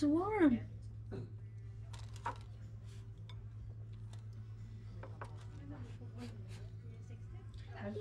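A fork clinks against a plate.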